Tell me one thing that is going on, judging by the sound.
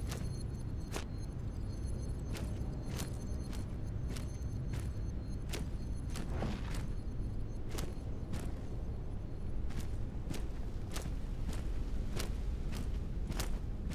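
Footsteps crunch steadily over dry grass and leaves.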